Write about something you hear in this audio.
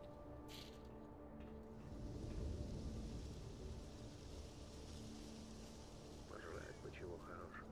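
Footsteps clank on a metal grating floor.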